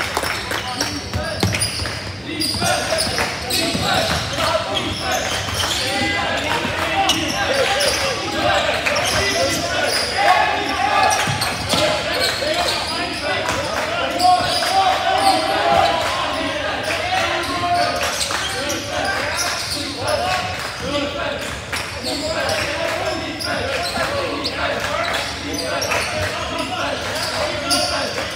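Sneakers squeak on a wooden court floor in a large echoing gym.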